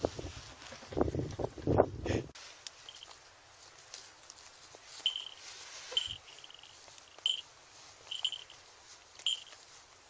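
A dog crunches and tears at a dead bird.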